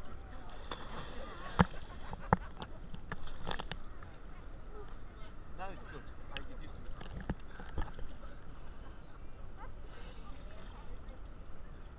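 Small waves lap and slosh close by, outdoors.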